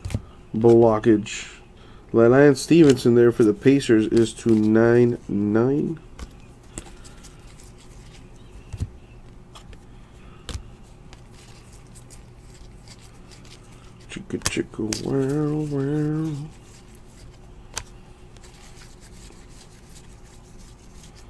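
Trading cards slide and flick against each other as they are shuffled by hand.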